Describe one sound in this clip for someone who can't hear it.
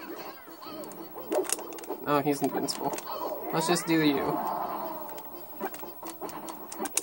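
Game characters land quick hits with sharp, punchy smacks through a television speaker.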